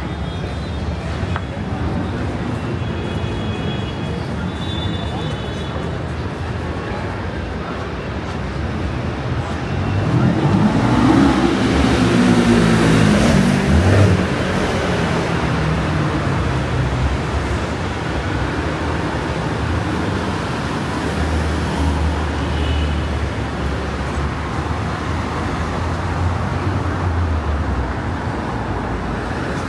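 A busy street hums with passers-by and traffic outdoors.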